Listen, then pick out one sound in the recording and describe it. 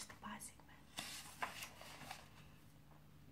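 Book pages rustle as they are flipped.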